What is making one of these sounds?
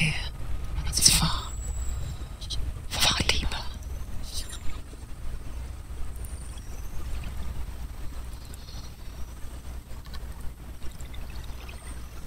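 A wooden paddle splashes through water.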